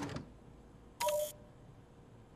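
A machine button clicks with a short electronic beep.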